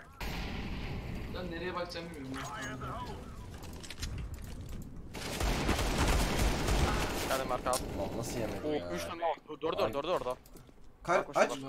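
Gunshots crack in rapid bursts.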